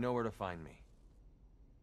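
A young man speaks in a low, firm voice.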